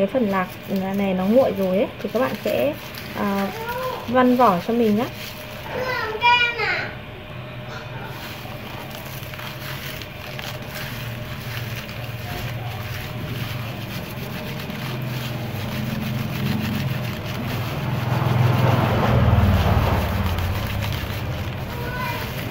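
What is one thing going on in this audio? Dry peanuts rustle and rattle as hands rub and stir them on a woven tray.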